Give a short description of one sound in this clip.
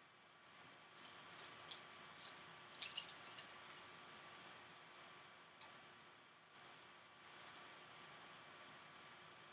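A chain necklace jingles and clinks in a man's hands.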